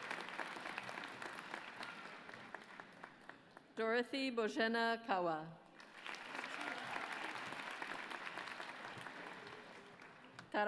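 An audience claps in a large hall.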